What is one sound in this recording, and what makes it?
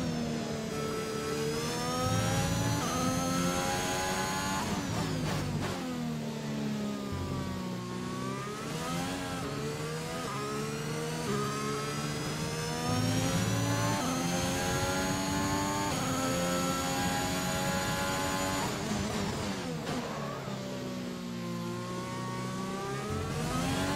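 A racing car engine screams as it revs up and down through the gears.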